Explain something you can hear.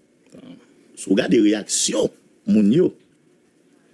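A man speaks briefly nearby outdoors.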